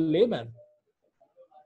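A young man speaks briefly over an online call.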